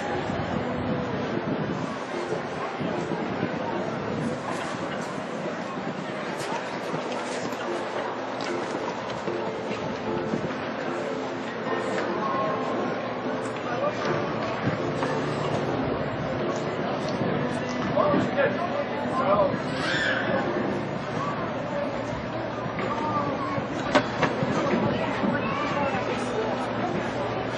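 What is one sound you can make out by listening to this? A horse's hooves thud on soft sand at a canter.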